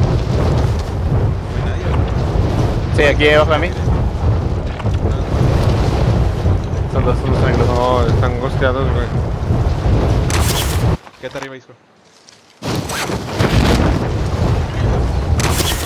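Wind rushes loudly and steadily past during a fall through the air.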